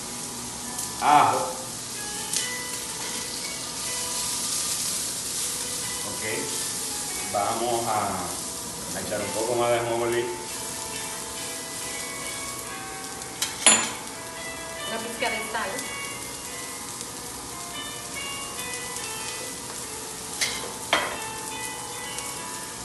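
A woman talks, close by.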